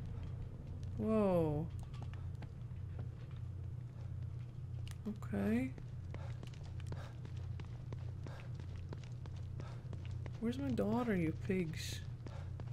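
A young woman speaks briefly into a microphone, close up.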